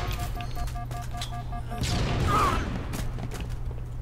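Rifle shots crackle in quick bursts.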